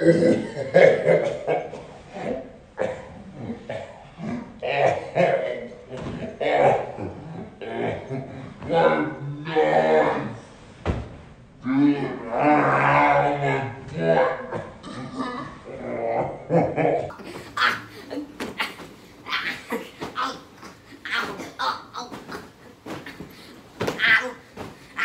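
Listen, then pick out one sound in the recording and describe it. A boy laughs and shouts excitedly close by.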